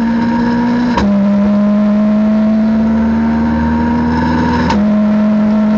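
Gears shift with sharp clunks.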